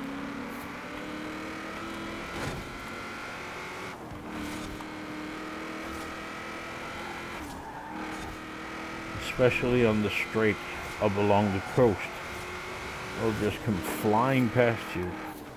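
A truck engine roars steadily at high speed.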